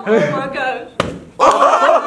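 A plastic bottle thuds onto a wooden table.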